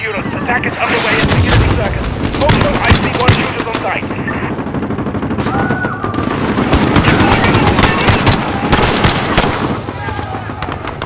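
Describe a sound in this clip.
A rifle fires sharp shots in short bursts.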